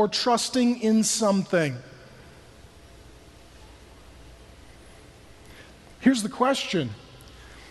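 A man speaks with animation into a microphone, pausing between phrases.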